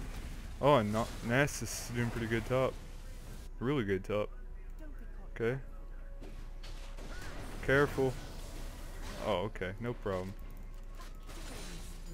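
Magic blasts and explosions burst in a game.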